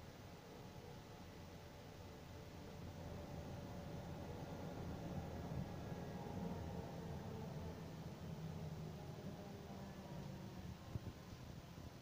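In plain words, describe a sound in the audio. Road noise rumbles low under the moving vehicle.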